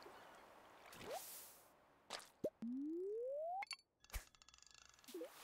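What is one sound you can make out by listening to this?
A video game plays short electronic sound effects, including a rising tone.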